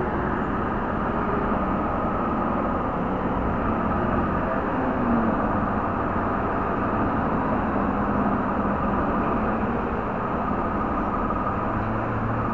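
A pickup truck's engine idles nearby.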